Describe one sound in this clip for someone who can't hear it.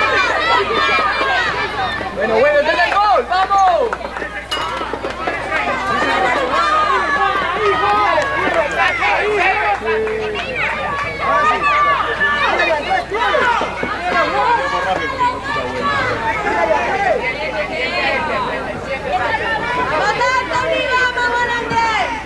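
Young children shout and call out excitedly outdoors.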